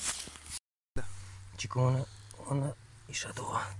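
A hand scrapes and digs through loose soil.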